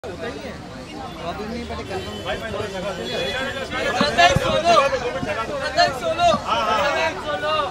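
A crowd of men and women chatters and calls out loudly outdoors, growing louder.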